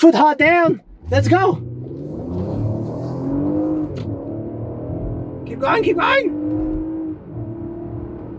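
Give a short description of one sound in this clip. A car engine hums and rises as the car pulls away.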